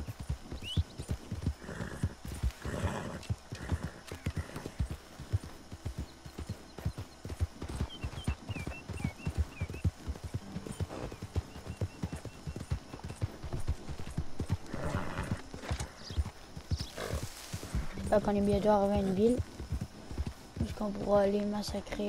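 A horse's hooves thud steadily on grass and dirt as it trots.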